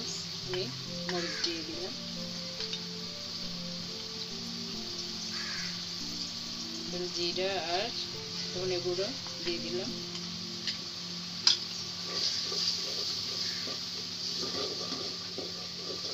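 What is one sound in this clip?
Hot oil sizzles steadily in a pan.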